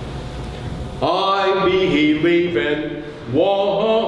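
An elderly man chants aloud through a microphone.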